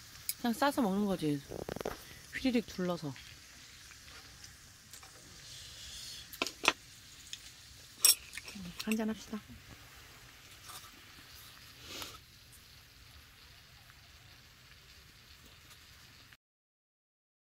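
Food sizzles quietly in a pan.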